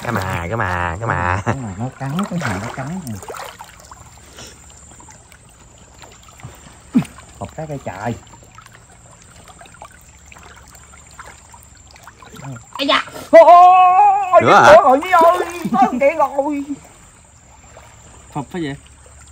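Muddy water splashes as a man wades through it.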